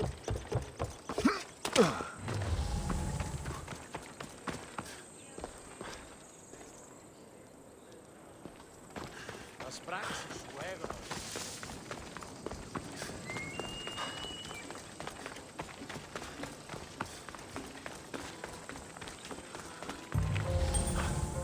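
Footsteps crunch quickly on gravel and stone.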